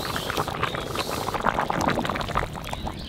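Water bubbles at a rolling boil.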